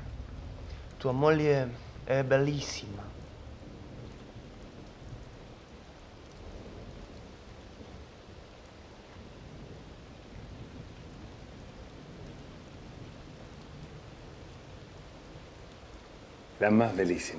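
A man speaks briefly in a raised voice nearby.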